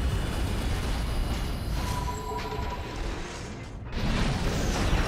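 A robot's heavy footsteps clank on the ground.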